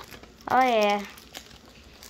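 Plastic wrapping crinkles under fingers.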